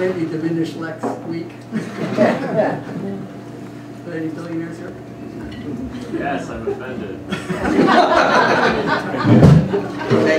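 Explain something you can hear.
A flugelhorn plays a melody.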